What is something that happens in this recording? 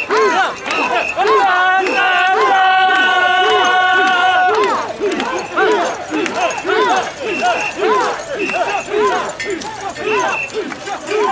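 A crowd of men chants loudly together in a steady rhythm outdoors.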